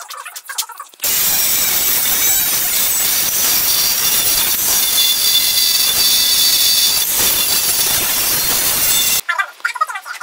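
An angle grinder grinds metal with a loud, steady whine.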